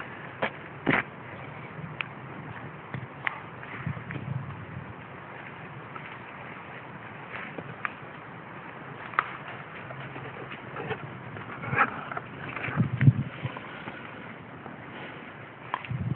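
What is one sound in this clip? A dog runs through dry leaves, rustling them.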